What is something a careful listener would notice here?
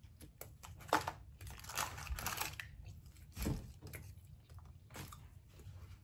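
Paper wrapping rustles and crinkles.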